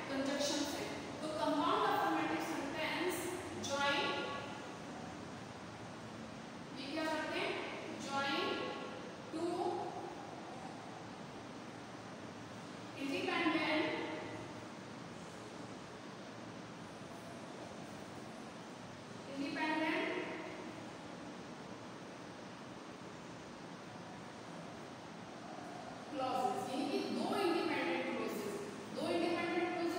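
A young woman speaks calmly in bursts, close by.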